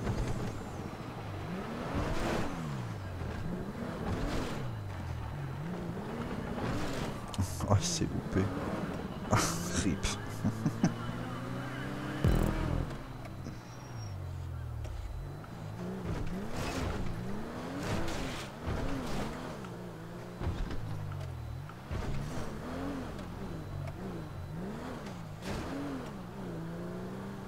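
A van's engine revs up and down over and over.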